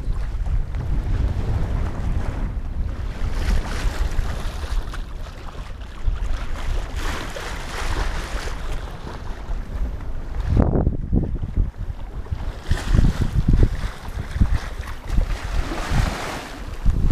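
Wind rushes and buffets outdoors.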